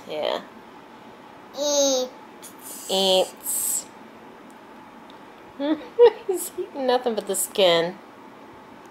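A toddler babbles and squeals excitedly close by.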